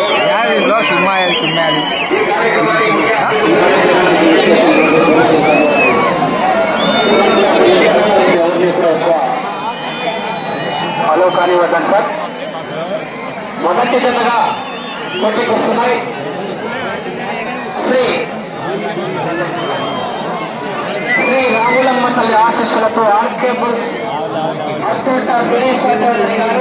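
Men nearby talk and shout excitedly.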